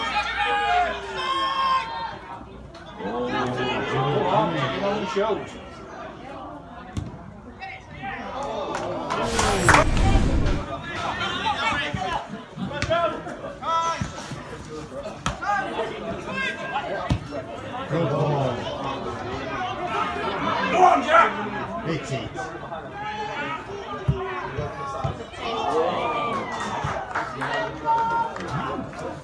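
Football players shout to each other in the distance.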